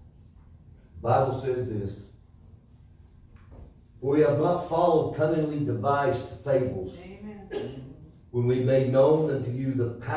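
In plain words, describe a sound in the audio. A middle-aged man reads aloud into a microphone in a room with some echo.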